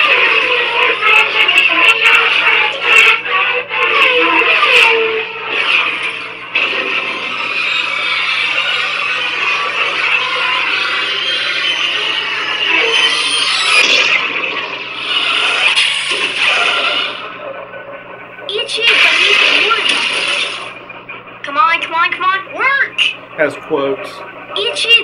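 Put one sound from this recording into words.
A toy lightsaber hums steadily.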